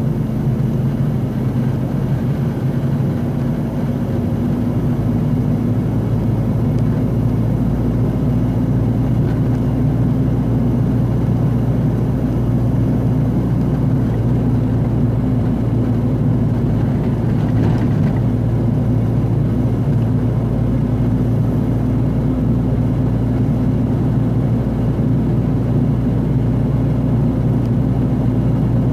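A vehicle's engine hums steadily and low while driving.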